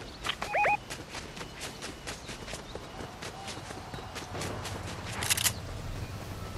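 Quick footsteps run over snow and grass.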